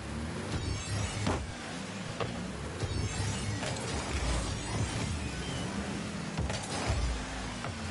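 A rocket boost roars in short bursts.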